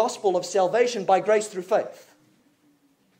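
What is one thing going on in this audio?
A man speaks emphatically through a microphone.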